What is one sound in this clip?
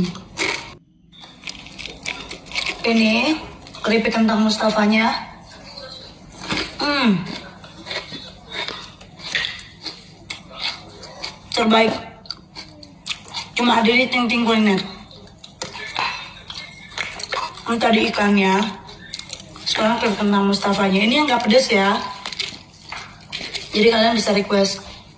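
Crunchy snacks rustle in a plastic jar.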